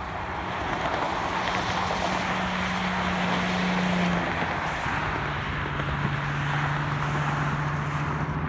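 A truck's engine hums loudly as it passes.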